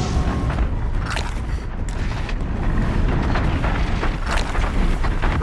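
Fire roars and crackles nearby.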